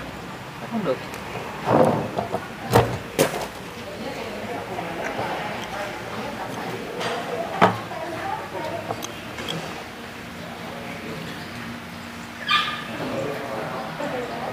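Chopsticks and spoons clink against bowls.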